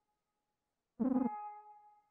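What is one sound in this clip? Short electronic game tones chime as a dialogue pops up.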